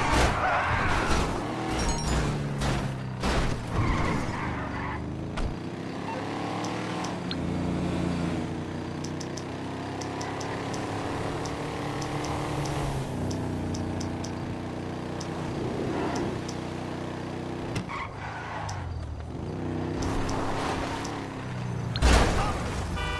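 A car engine roars and revs, rising and falling in pitch.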